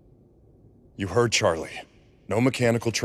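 A deep-voiced man speaks gruffly.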